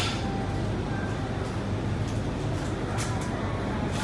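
Train doors slide shut with a thud.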